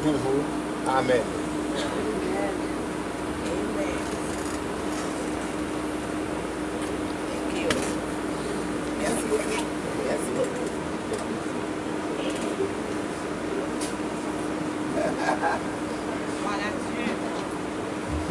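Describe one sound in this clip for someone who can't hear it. An elderly man speaks softly up close.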